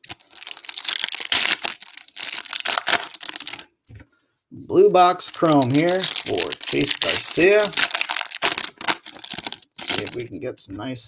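Foil card wrappers crinkle and tear as hands rip packs open.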